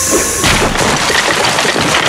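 A wall crashes down and crumbles.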